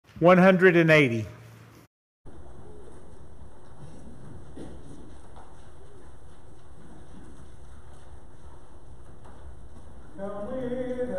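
A man speaks through a microphone in an echoing hall.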